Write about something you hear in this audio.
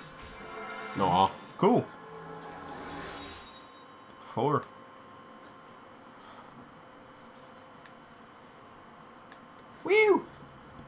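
Short electronic chimes ring out several times, sweeping up and down in pitch.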